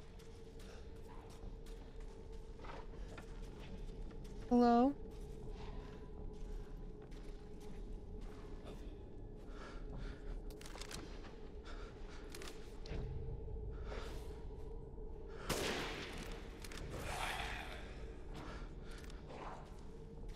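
A young woman talks quietly into a close microphone.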